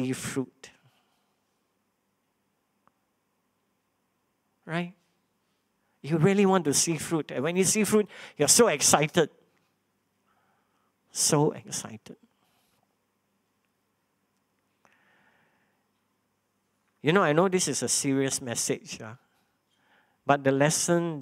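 A man speaks calmly through a microphone, with pauses, reading out.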